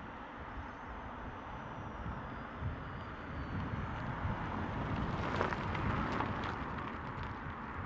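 A car drives past on a road outdoors.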